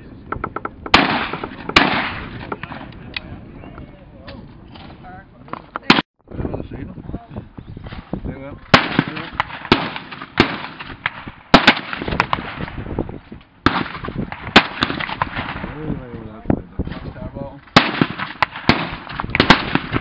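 A shotgun fires loud sharp bangs again and again.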